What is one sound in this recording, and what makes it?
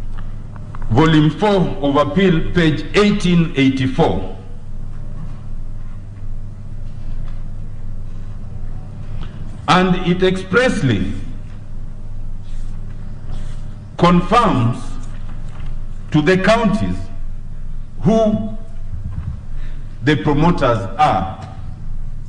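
A man speaks formally through a microphone, pausing between phrases.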